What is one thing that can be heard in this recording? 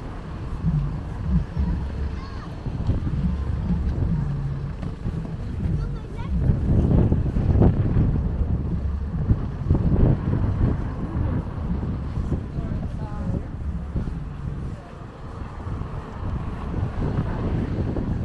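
Footsteps of many people shuffle on pavement.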